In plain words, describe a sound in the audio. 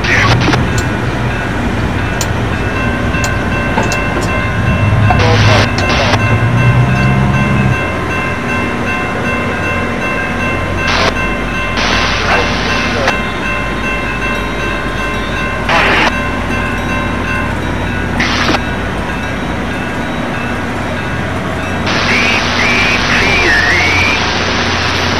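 A railroad crossing bell rings steadily.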